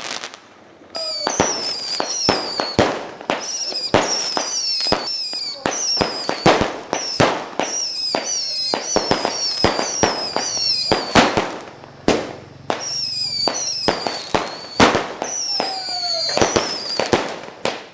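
Firework rockets whistle as they shoot upward.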